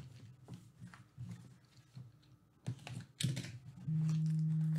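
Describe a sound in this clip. Plastic wrap crinkles and tears as it is peeled off.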